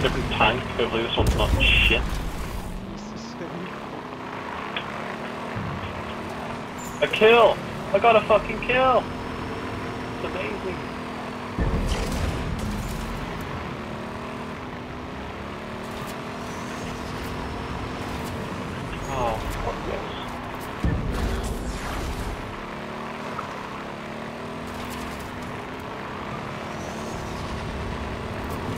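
A game vehicle's engine hums steadily as it drives.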